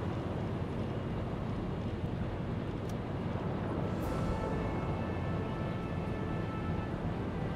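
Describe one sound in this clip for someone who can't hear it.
Engines rumble low and steady.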